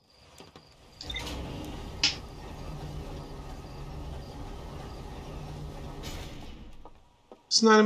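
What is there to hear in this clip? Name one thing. A lift rumbles steadily as it rises.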